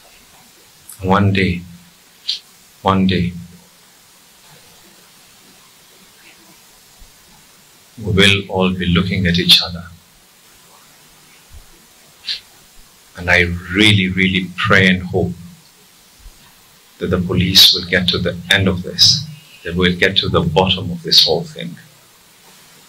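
A man speaks with emphasis into a microphone, in bursts with pauses.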